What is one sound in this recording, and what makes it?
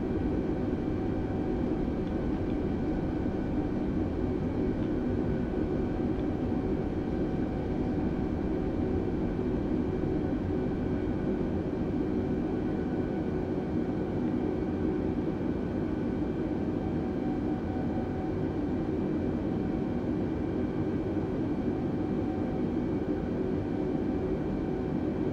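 Aircraft wheels rumble over the ground.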